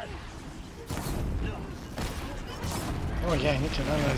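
Fire bursts with a loud whoosh.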